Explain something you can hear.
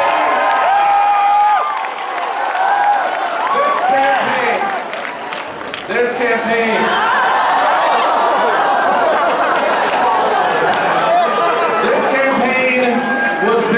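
Many people clap their hands.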